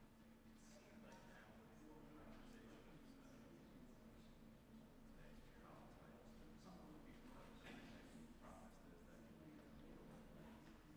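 Several men chat quietly at a distance in a large room.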